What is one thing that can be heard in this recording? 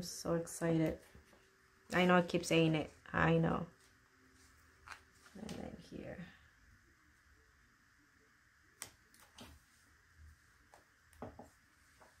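Paper rustles and taps softly under fingers.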